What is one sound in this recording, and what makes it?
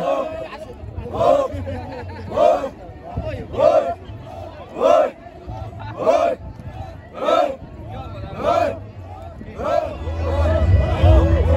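A group of men chant together in rhythmic shouts outdoors.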